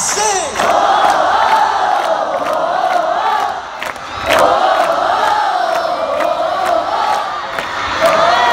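A singer performs through loud speakers.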